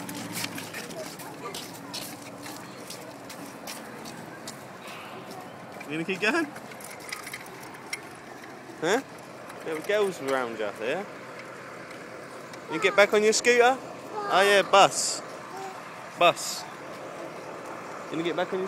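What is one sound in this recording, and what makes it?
Small plastic scooter wheels roll and rattle over rough pavement.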